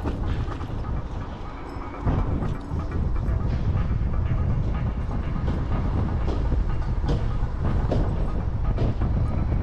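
An electric scooter rattles over a rough road.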